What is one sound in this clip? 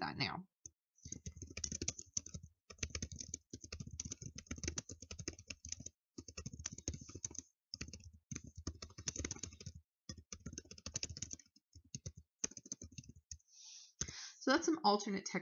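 Keys clack quickly on a keyboard.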